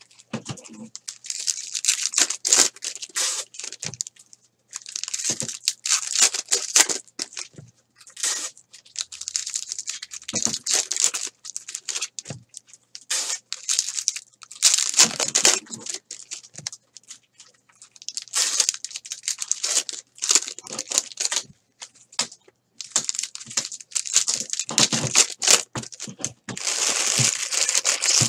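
Foil card wrappers crinkle and tear as hands rip them open.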